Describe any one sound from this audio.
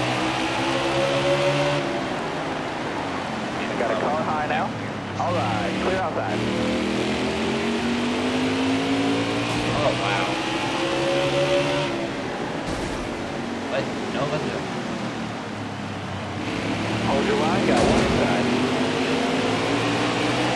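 Racing car engines roar and whine steadily, rising and falling in pitch.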